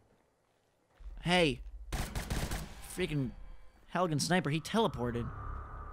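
A rifle fires sharp shots close by.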